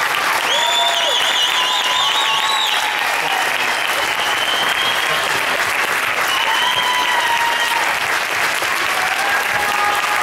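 A large crowd of young people cheers and shouts loudly in an echoing hall.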